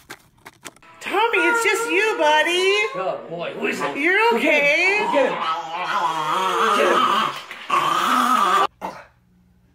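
A small dog howls and yowls.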